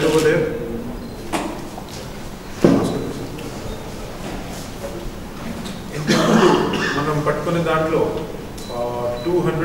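A young man speaks calmly into a microphone.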